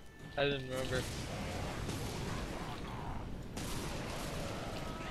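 Lightning crackles and booms in bursts.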